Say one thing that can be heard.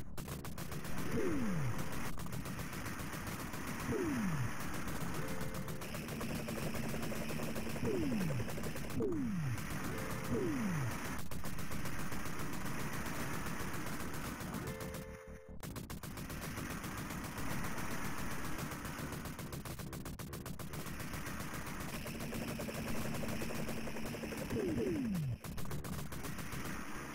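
Rapid arcade gunfire rattles steadily.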